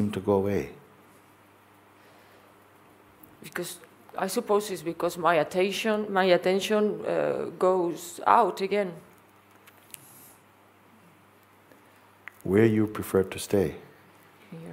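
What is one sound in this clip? An elderly man speaks calmly and softly.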